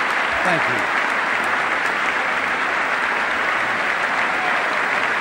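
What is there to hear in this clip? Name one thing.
A large crowd applauds loudly in a big echoing hall.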